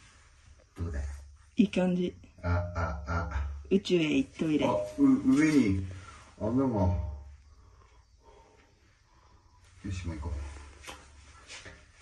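A young man talks with animation, his voice echoing in a hollow concrete space.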